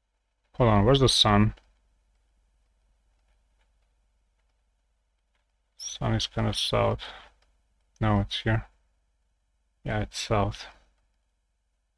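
A young man speaks with animation close to a microphone, in short bursts.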